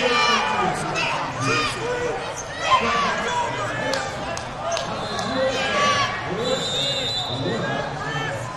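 A crowd of spectators talks and shouts in a large echoing hall.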